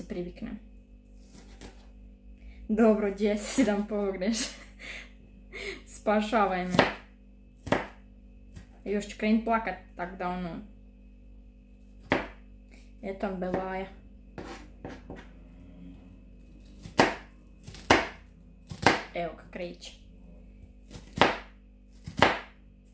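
A knife chops on a cutting board with sharp taps.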